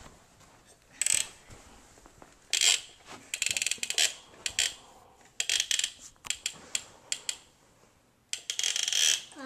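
Plastic toy trains clatter and click against a wooden track.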